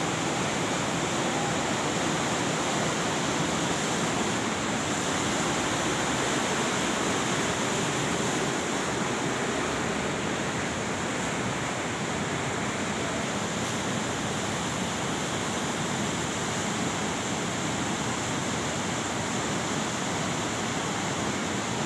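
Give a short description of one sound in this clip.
A fast river rushes loudly over rocks nearby.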